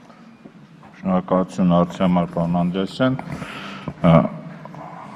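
A man speaks loudly and forcefully into a microphone.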